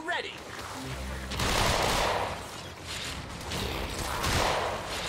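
Heavy blows strike with deep thuds.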